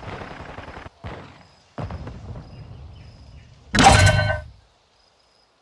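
A young man talks into a microphone with animation.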